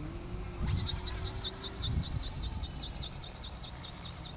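A small aircraft drones overhead.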